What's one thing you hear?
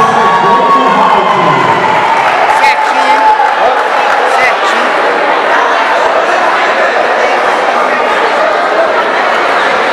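A crowd chatters and calls out in an echoing hall.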